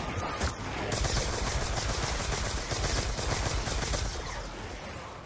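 An electric weapon crackles and zaps loudly.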